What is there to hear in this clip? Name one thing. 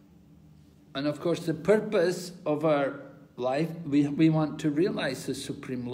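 An elderly man speaks close to a microphone, with animation.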